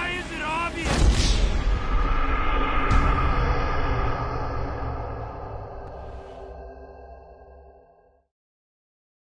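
A plane crashes with a loud explosion that rumbles and slowly fades.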